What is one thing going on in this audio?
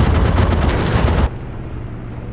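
An explosion booms loudly nearby.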